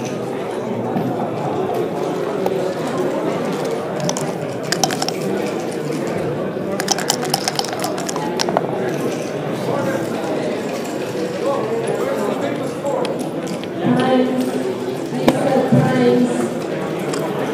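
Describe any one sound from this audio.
Game pieces click against each other and the board.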